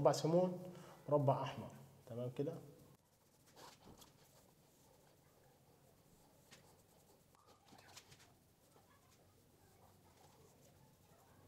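A sponge dabs paint softly against a wall.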